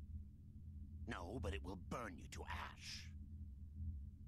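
An elderly man speaks gravely.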